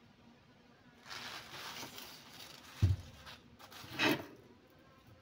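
A plant leaf rustles as it is handled close by.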